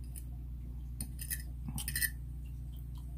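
A metal fork scrapes and clinks on a plate.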